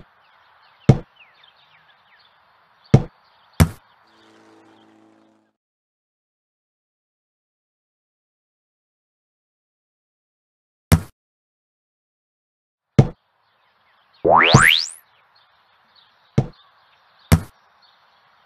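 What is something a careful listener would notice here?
A soccer ball is kicked with a sharp thump.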